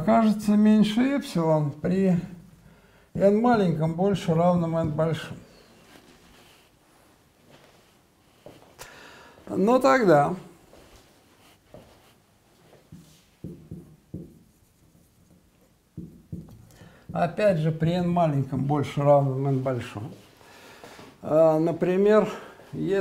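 An elderly man lectures in a calm voice, close by.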